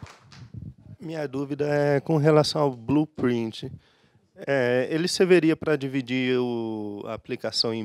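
A young man speaks through a microphone in a large echoing hall.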